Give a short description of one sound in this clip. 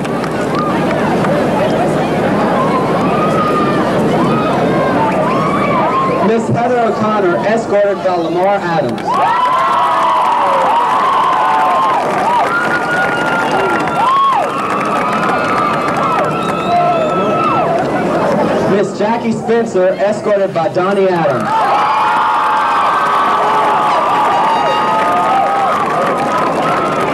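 A marching band plays brass music outdoors.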